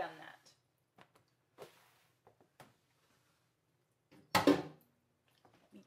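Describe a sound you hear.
Plastic and dishes clunk in a metal sink.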